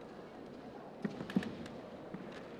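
Bamboo swords clack together.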